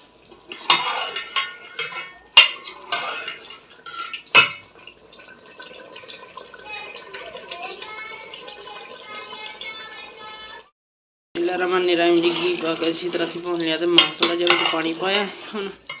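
A metal spoon scrapes and clinks against a pot.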